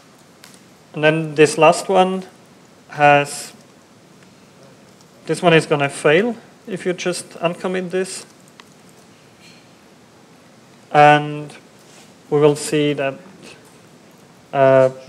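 A man talks calmly into a microphone, pausing between phrases.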